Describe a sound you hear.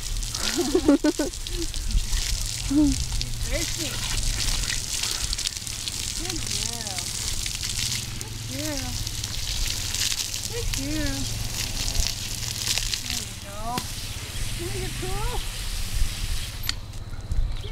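Water sprays steadily from a hose.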